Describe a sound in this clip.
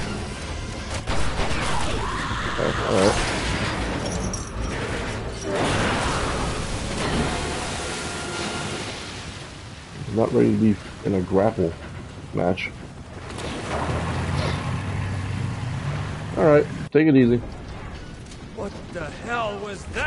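A man talks casually into a nearby microphone.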